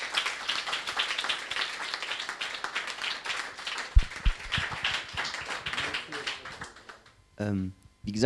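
A young man speaks calmly through a microphone in a large room.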